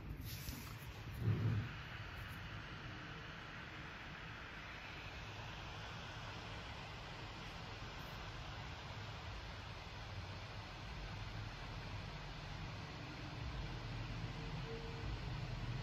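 A laptop fan whirs steadily close by.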